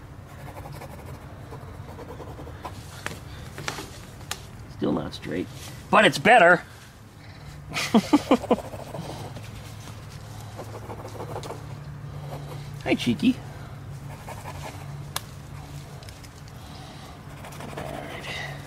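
A pencil scratches on cardboard.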